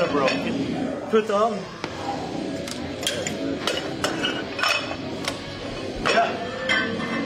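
Metal weights clank.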